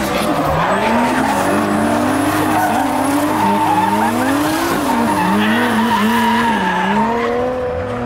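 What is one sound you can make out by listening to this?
Tyres squeal and screech on tarmac.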